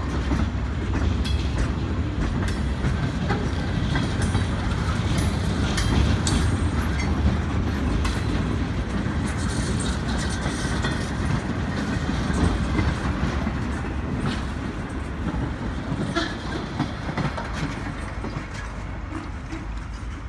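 A train of empty flat cars rumbles past close by on the rails.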